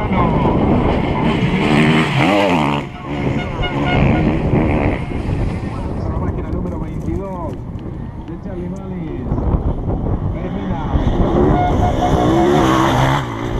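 An enduro dirt bike roars past at speed on a gravel track.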